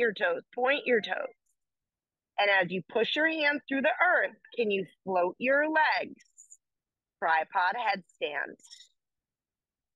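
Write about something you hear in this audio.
A young woman speaks calmly, giving instructions close to a microphone.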